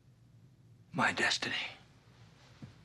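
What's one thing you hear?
A man cries out sharply.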